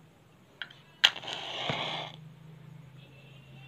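A match strikes and flares with a hiss.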